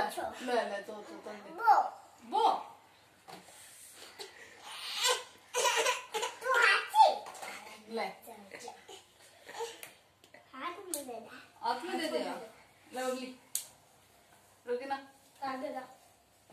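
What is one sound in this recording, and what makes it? A young woman talks playfully to a small child close by.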